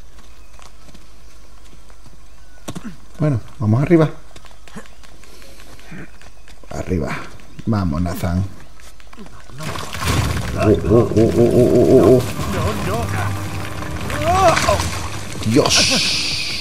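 A younger man answers with animation, close by.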